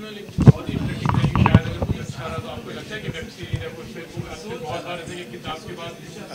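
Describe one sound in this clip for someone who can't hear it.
An elderly man speaks and laughs up close.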